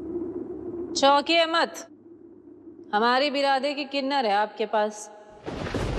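A woman speaks forcefully and loudly, close by.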